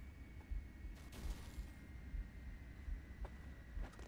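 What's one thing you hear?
A hovering vehicle's engine hums.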